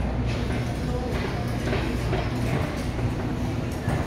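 A shopping cart rattles as it rolls across a hard floor.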